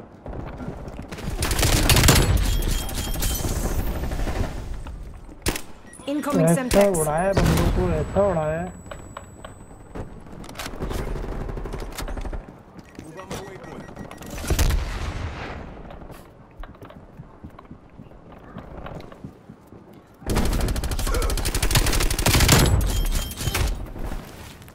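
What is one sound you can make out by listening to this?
Automatic gunfire rattles in loud, rapid bursts.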